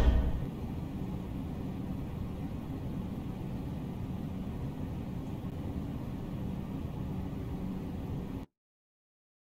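A large fan whirs with a steady low rumble.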